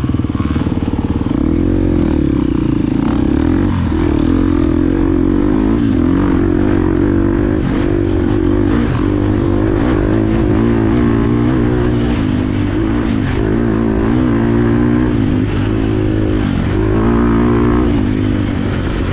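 A dirt bike engine buzzes up close, its pitch rising and falling as the throttle changes.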